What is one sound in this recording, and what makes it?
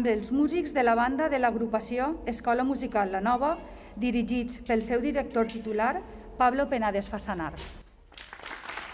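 A young woman speaks calmly through a loudspeaker.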